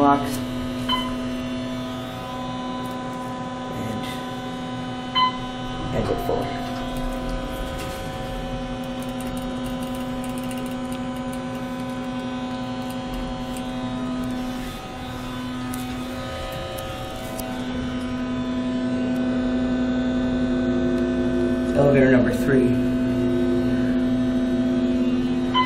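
An elevator hums steadily as it runs.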